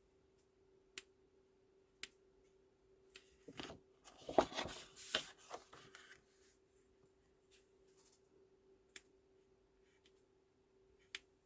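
A stamp block taps down onto paper.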